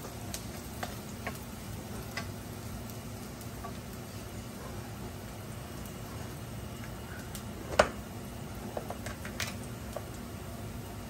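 Oil sizzles softly in a pan.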